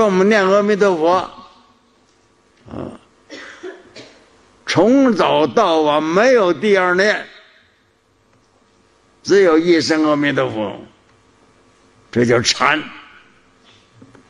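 An elderly man speaks slowly and calmly into a microphone, with pauses between phrases.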